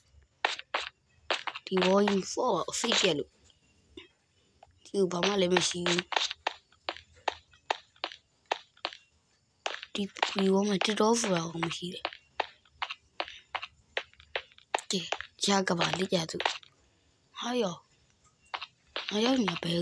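Footsteps crunch on dirt at a steady walking pace.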